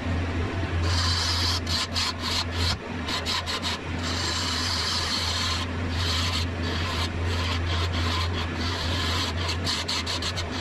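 A chisel scrapes and hisses against spinning wood in bursts.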